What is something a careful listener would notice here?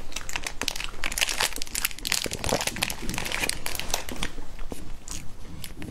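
Plastic packaging crinkles and rustles close up.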